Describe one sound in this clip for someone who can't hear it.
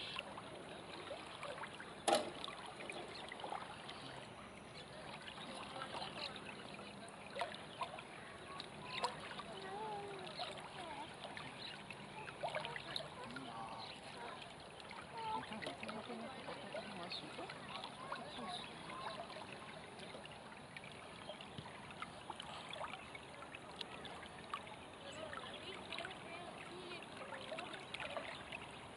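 River water ripples and laps gently outdoors.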